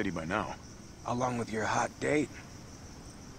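A young man answers in a teasing tone.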